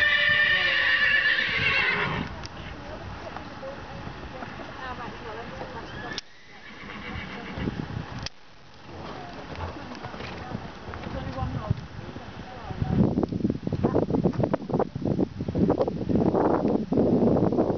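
A horse's hooves thud softly on sand as it canters and jumps.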